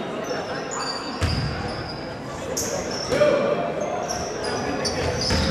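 Spectators murmur and call out in a large echoing gym.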